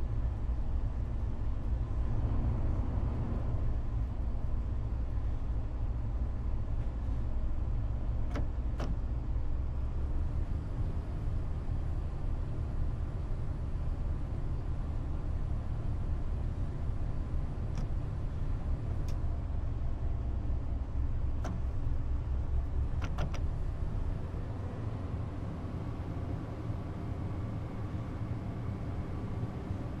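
A train engine hums and rumbles steadily as the train runs along the track.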